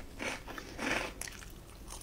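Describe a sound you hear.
A young woman bites and chews food close to a microphone.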